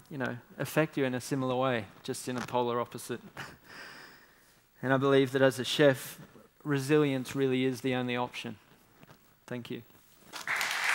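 A young man speaks calmly into a microphone to an audience.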